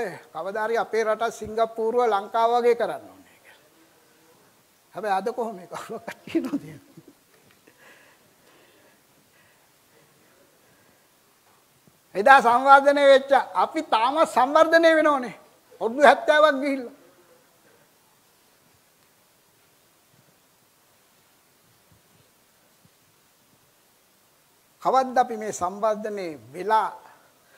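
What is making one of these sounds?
An elderly man speaks with animation through a microphone, pausing between phrases.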